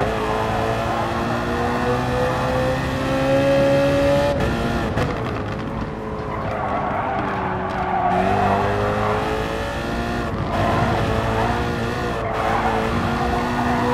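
A race car engine roars loudly, rising in pitch as it speeds up and dropping as it shifts gear and brakes for corners.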